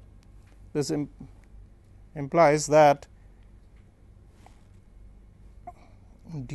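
An elderly man speaks calmly into a close microphone, in short phrases.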